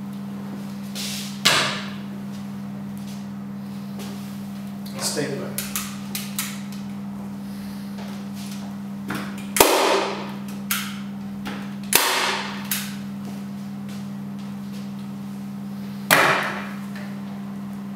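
A spray can hisses in short, sharp bursts.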